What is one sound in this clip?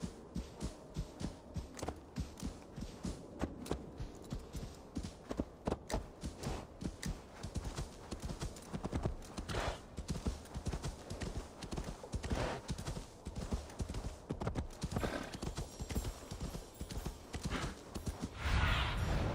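Horse hooves thud steadily on snow.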